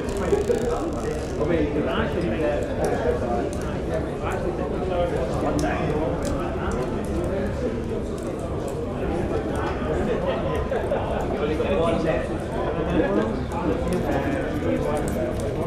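A crowd of men and women chatter and murmur in a busy room.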